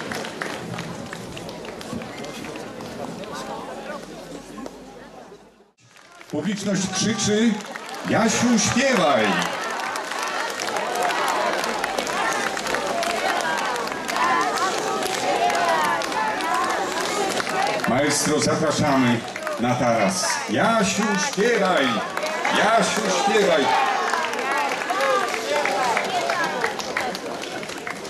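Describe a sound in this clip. A large outdoor crowd claps along in rhythm.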